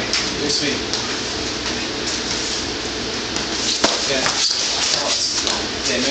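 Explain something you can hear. Bare feet shuffle and thump on a mat.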